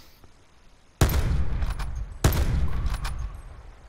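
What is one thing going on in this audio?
A sniper rifle fires two loud shots.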